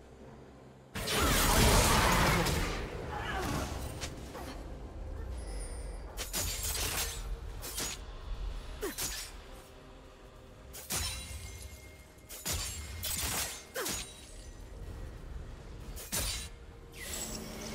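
Magic spells burst and crackle in a fast game battle.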